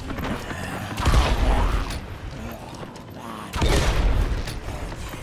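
A crossbow fires with a heavy thump.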